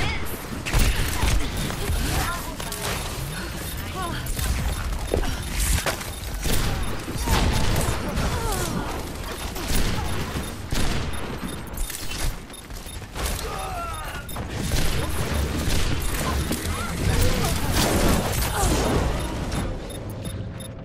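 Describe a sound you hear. Rapid gunfire crackles and zaps in bursts.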